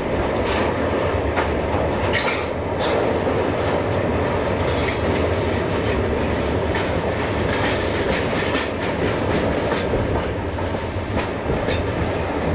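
Train wheels clack rhythmically over the rail joints.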